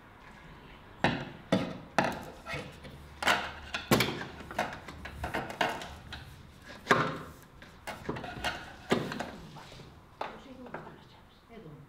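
Hands knock and tap on a window pane.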